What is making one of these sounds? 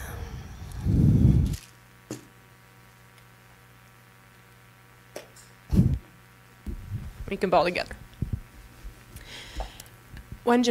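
A woman speaks through a microphone.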